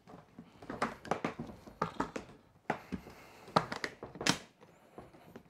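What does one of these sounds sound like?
Plastic latches click open on a hard case.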